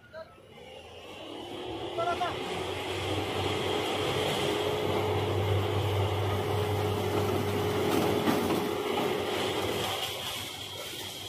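Harvested crop pours and rattles into a trailer.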